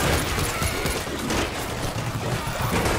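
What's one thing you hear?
A crowd of zombies snarls and groans.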